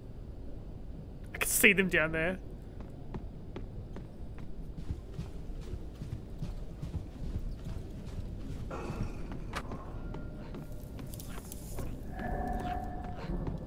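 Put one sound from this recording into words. A creature scrambles along a wooden floor with quick, pattering footsteps.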